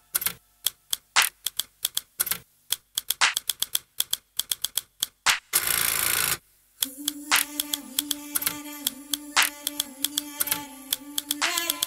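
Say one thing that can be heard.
Dance music with sharp, punchy beats plays loudly over loudspeakers.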